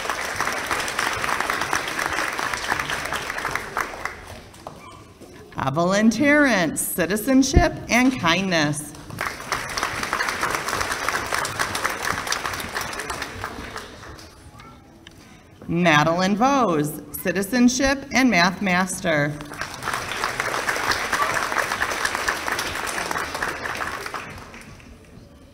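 An audience claps in a hall.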